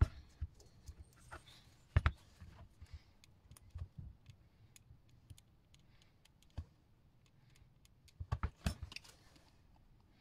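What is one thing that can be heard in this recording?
A plastic glue gun clicks and taps against wood.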